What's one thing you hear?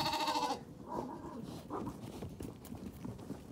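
Small hooves patter softly on grass.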